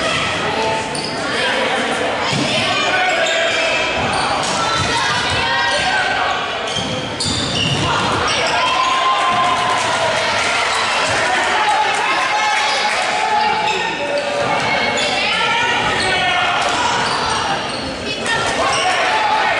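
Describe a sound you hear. Sneakers squeak on a hard gym floor.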